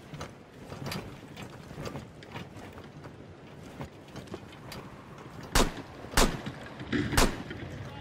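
Footsteps crunch over snow.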